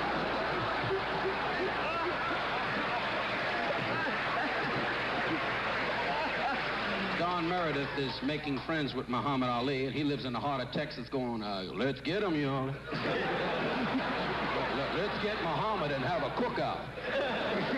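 A man laughs heartily.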